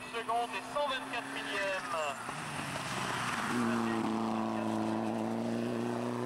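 A rally car engine roars and revs hard as it races past close by.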